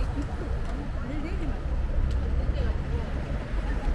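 A bus idles nearby.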